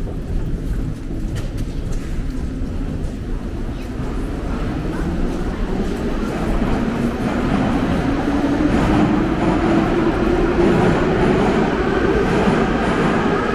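Many footsteps shuffle and tap on a hard floor in a large echoing hall.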